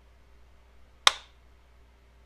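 A trigger snaps with a single sharp click.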